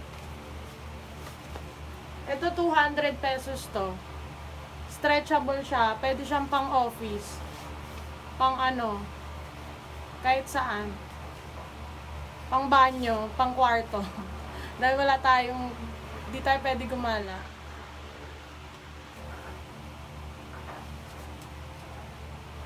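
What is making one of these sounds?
Cloth rustles as trousers are shaken out.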